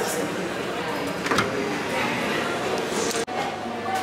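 A glass door clicks and swings open.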